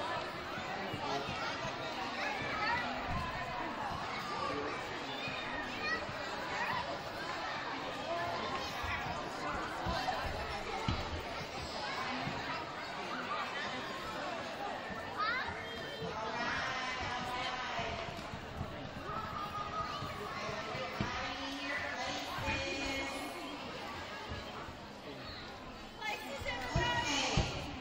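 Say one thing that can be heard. A crowd of children and adults chatters in a large echoing gym.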